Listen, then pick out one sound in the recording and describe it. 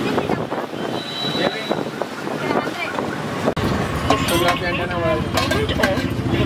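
Steel dishes clink and clatter close by.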